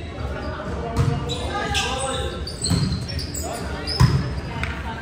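A volleyball is hit with sharp slaps in a large echoing gym.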